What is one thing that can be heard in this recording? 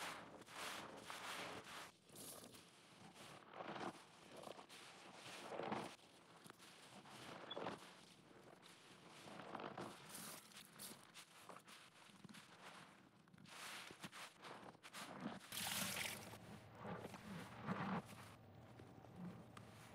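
Wet, foamy sponges squelch as hands squeeze them.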